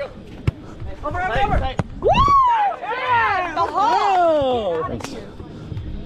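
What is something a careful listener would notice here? Young adults shout and cheer excitedly.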